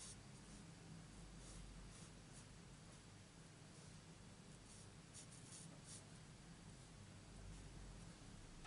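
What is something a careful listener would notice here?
A felt-tip marker scratches softly on card stock.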